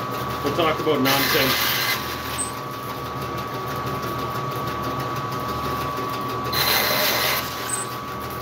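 A band saw blade hisses as it cuts through wood.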